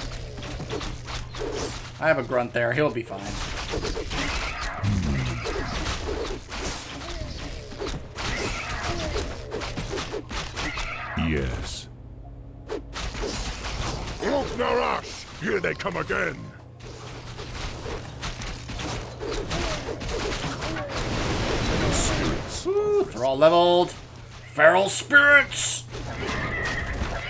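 Swords clash and clang in a battle.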